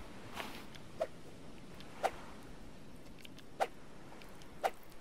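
Sharp knocks sound as a hand swings a tool down several times.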